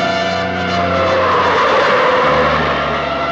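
Car tyres skid and scatter gravel.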